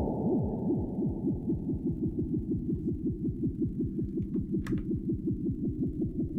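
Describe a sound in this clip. A synthesizer plays a low, buzzy sequence of fast repeating notes that sweep up and down.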